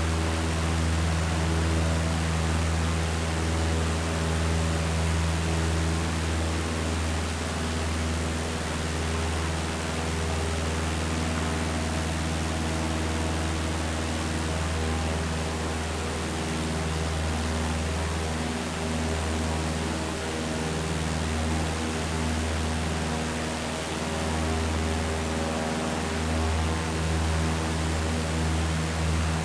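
A small propeller plane's engine drones steadily.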